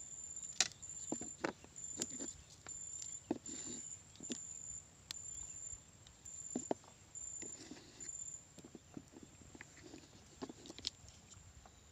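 A hooked fish splashes and thrashes at the water's surface.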